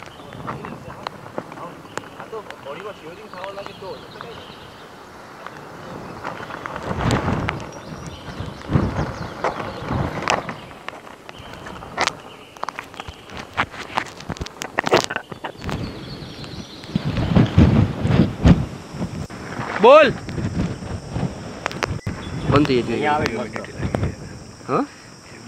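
Strong wind gusts roar against the microphone outdoors.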